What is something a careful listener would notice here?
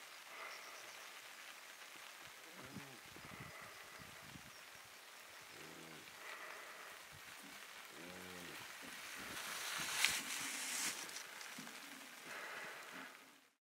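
Wind blows softly across an open, grassy hillside.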